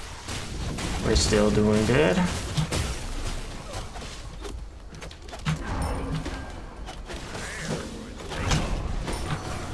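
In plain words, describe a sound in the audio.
Magic blasts whoosh and crackle during a fight.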